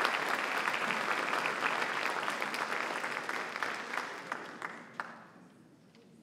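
An audience claps loudly in a large hall, then the applause fades away.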